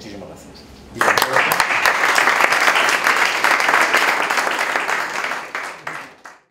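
An audience applauds in a room, then the clapping fades.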